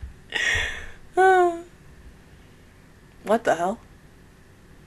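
A young woman speaks close to a microphone in short, playful bursts.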